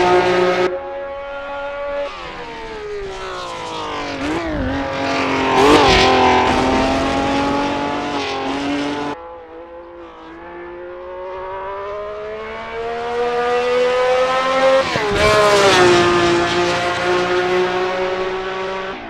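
A 1960s V12 Formula One car's engine revs hard, its pitch climbing and dropping through gear changes.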